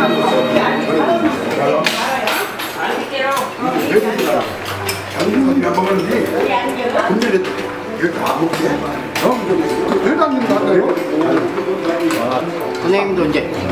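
A crowd of middle-aged and elderly men and women chatter loudly close by in a busy room.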